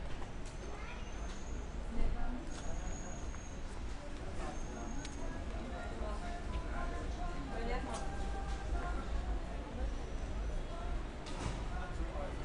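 Young adults talk and chatter nearby outdoors.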